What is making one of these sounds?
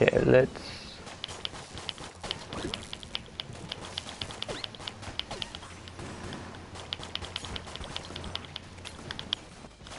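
Small video game gunshots pop rapidly in bursts.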